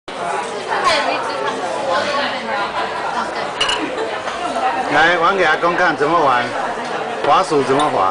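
A young child babbles and talks in a high voice close by.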